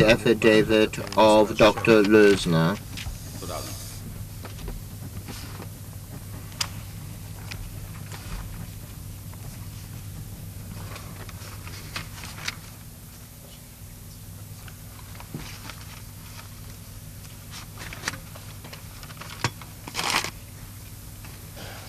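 A man speaks into a microphone in a formal, measured voice.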